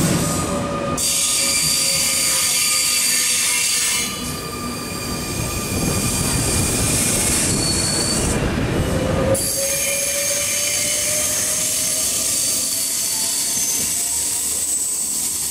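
A second train hums and squeals as it rolls through a station.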